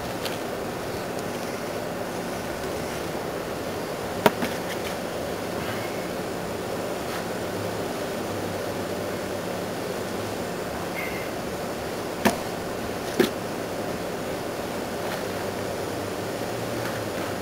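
A plastic sheet crinkles underfoot and under hands.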